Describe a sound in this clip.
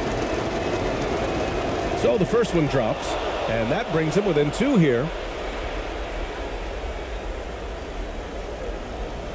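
A large arena crowd murmurs and cheers steadily.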